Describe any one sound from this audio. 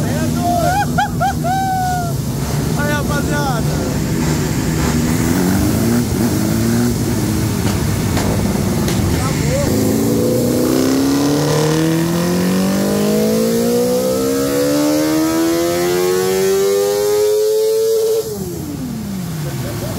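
A motorcycle engine idles and revs loudly, rising steadily in pitch before dropping off.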